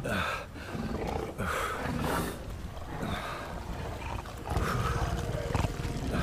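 A man grunts with effort, close by.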